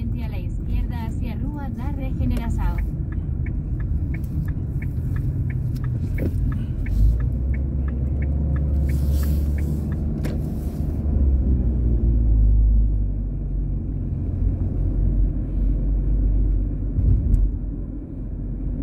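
A car engine hums low and steady while driving.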